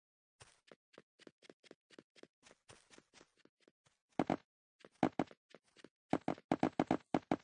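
Quick footsteps tap on stone, growing louder and heavier partway through.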